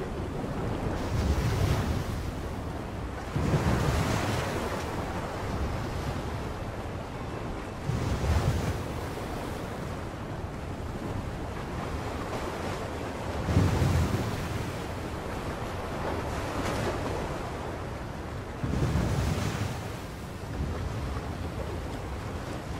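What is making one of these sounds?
Rough seas churn and roar in a strong wind.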